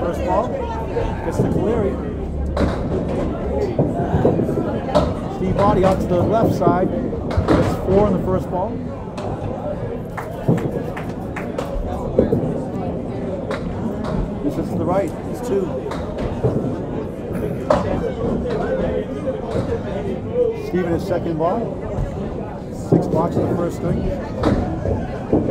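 Many people chatter around in a busy, echoing hall.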